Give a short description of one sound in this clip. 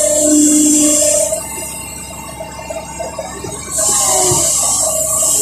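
Hydraulics whine as an excavator arm moves.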